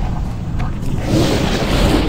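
An electric crackle bursts out.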